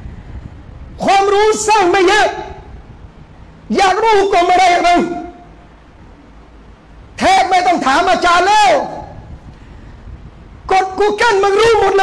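A middle-aged man speaks loudly and forcefully into a microphone, in bursts with pauses.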